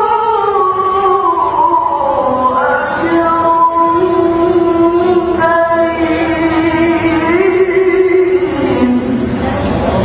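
A young man chants in a long, wavering melodic voice through a microphone, in a large echoing hall.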